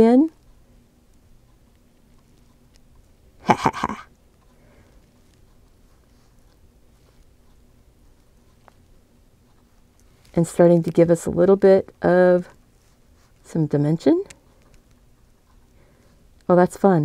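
A brush brushes softly across paper.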